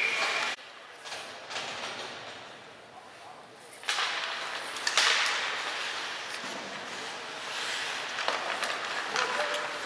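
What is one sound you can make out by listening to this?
Ice skates scrape and carve across the ice in a large echoing arena.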